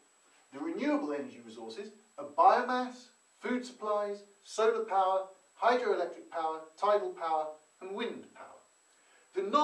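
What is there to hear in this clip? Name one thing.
A man speaks calmly and clearly close by, explaining.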